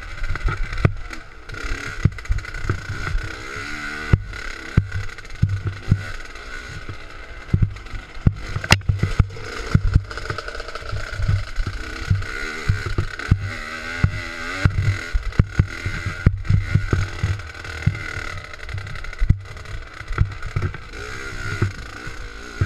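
A dirt bike engine revs and sputters up close.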